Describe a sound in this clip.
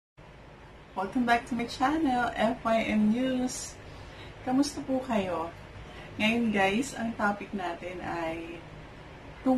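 A woman talks cheerfully and close up, straight to the listener.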